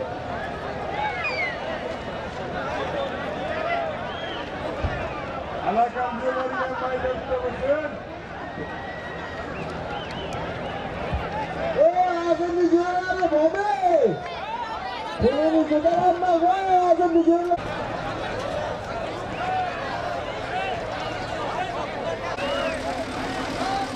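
A large outdoor crowd of men shouts and chatters.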